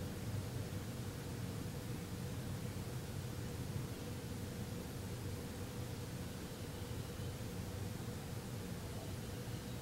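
A man hums a low, steady tone close by.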